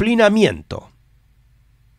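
A middle-aged man speaks briefly into a close microphone.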